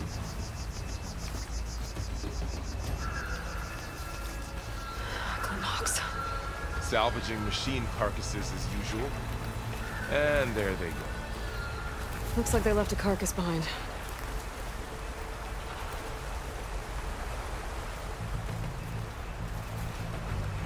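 Footsteps rustle through grass and ferns.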